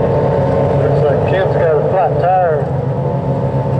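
An engine revs up and down in bursts.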